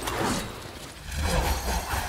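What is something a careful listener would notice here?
An explosion bursts with a boom.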